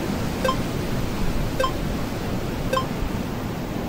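Soft electronic blips sound as a menu cursor moves.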